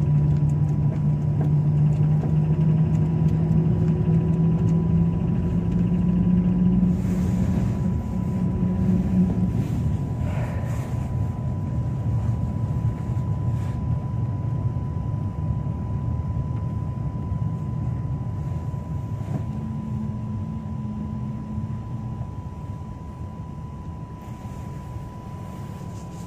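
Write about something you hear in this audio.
Tyres rumble on a snowy road.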